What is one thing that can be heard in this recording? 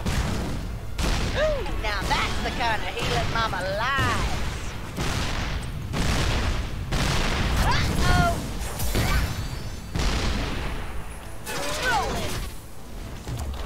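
Game weapons fire and blasts crackle in quick bursts.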